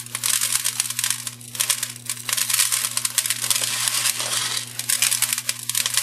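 Small plastic beads rustle and crackle as hands press them onto a jar.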